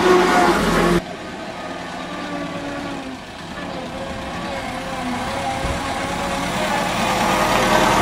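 A vintage open-top car's engine hums as the car approaches along a driveway.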